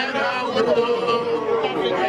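A young man sings out loudly.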